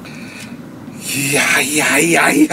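A middle-aged man speaks loudly and with animation close by.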